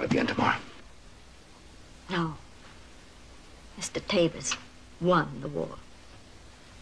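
A middle-aged woman speaks calmly nearby, in short phrases.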